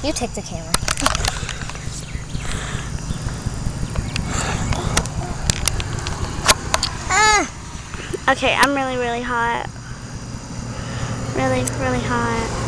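A young girl talks close by in a high, squeaky playful voice.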